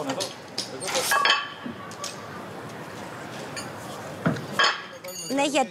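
Heavy metal weights clank as they are stacked.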